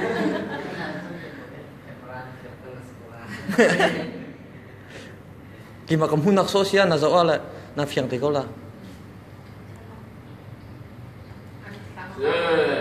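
Young men and women talk and laugh nearby.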